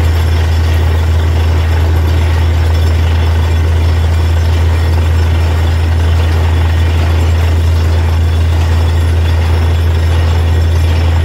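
Muddy water splashes and gushes from a borehole.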